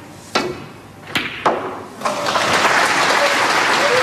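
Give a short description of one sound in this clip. A snooker cue strikes the cue ball with a sharp click.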